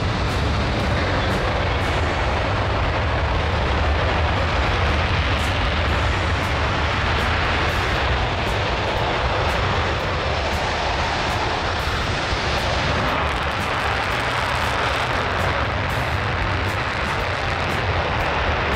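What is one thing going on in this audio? A jet engine roars loudly and steadily.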